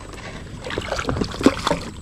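A paddle splashes through water.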